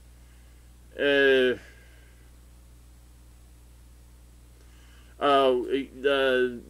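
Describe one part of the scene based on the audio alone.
A man sings long, drawn-out notes close by.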